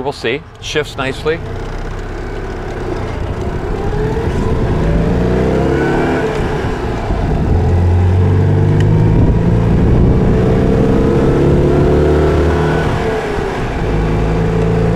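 An old car engine drones loudly, rising and falling in pitch as it revs through the gears.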